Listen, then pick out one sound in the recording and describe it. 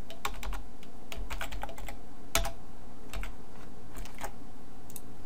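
Keys on a keyboard click in quick, uneven bursts.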